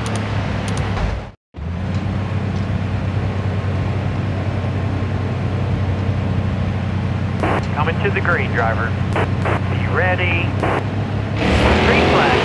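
A race car engine idles with a low steady rumble.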